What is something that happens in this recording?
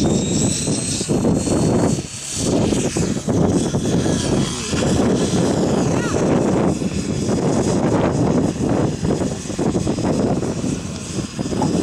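A model helicopter buzzes steadily as it hovers overhead.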